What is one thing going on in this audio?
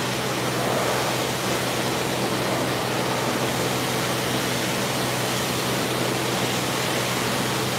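A pressure washer sprays water steadily in a large echoing hall.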